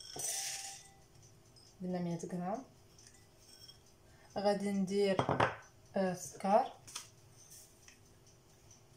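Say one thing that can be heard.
Dry powder pours softly from one bowl into another.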